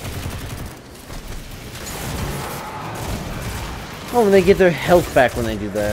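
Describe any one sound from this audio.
Rapid gunfire blasts from a video game weapon.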